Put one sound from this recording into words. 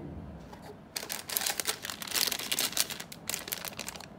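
A plastic bag crinkles loudly.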